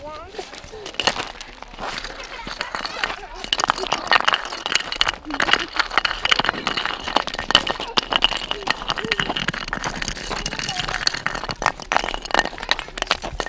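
Footsteps crunch over loose stones and rubble.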